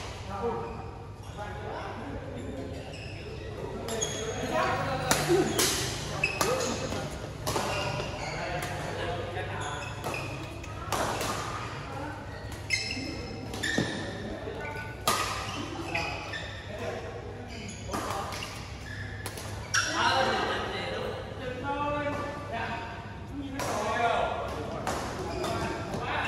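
Men talk and call out loosely in a large echoing hall.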